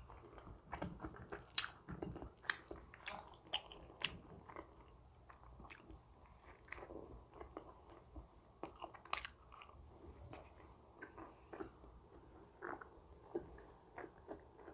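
A woman chews soft bread close to a microphone.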